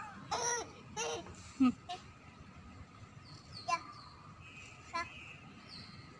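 A small girl babbles close by in short bursts.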